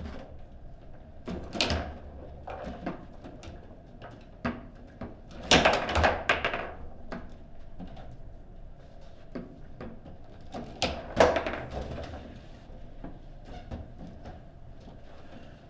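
Foosball rods rattle and thud as they are spun and slammed.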